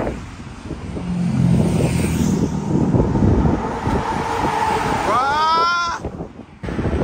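A lorry drives past on a bridge with a loud engine rumble.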